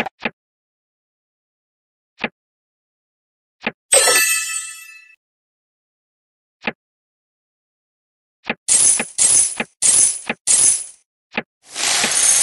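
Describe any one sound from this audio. Game interface clicks tap briefly now and then.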